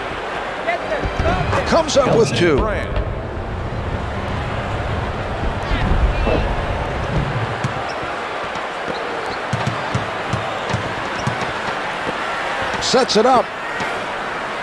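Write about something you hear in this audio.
A crowd roars steadily in a large echoing arena.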